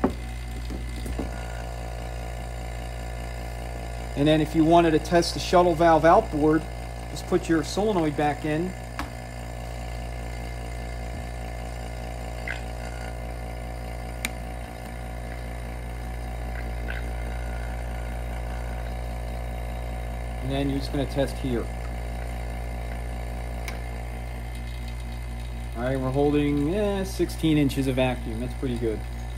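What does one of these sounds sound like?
A vacuum pump hums steadily.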